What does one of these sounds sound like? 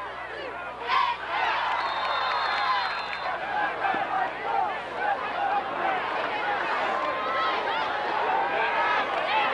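A large crowd cheers and shouts in an open-air stadium.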